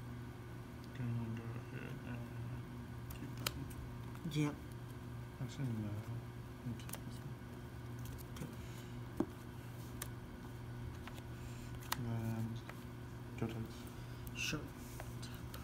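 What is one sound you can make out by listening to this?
Playing cards slide and tap on a soft mat.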